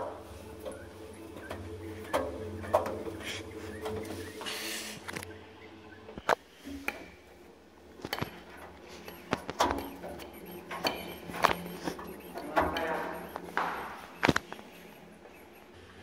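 A dryer drum spins with a low steady hum.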